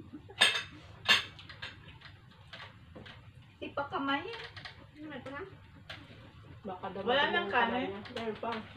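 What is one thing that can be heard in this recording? Young women talk and laugh together nearby.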